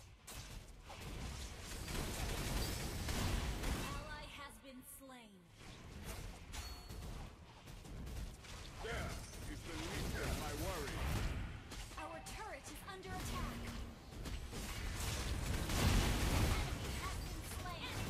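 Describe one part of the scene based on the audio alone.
Magic blasts burst and whoosh in a fast-paced fight.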